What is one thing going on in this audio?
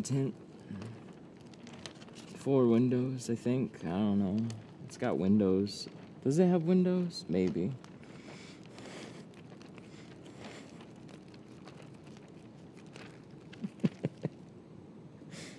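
A plastic film rustles and crinkles as hands press it against glass.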